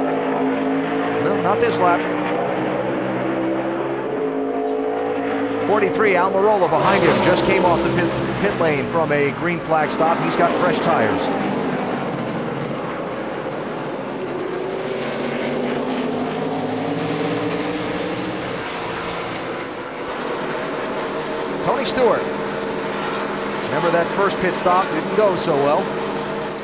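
Race car engines roar loudly and steadily.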